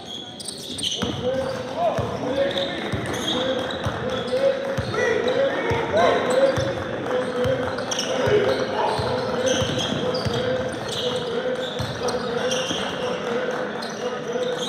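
A basketball bounces repeatedly on a hard floor in a large echoing hall.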